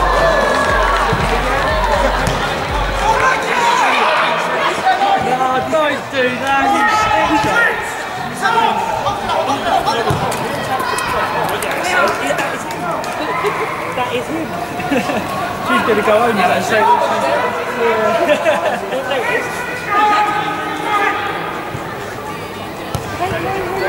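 Young men shout to each other across an open outdoor pitch.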